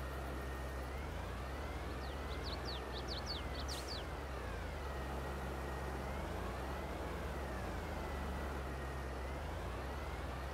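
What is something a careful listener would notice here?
A tractor engine revs up and down as the tractor turns.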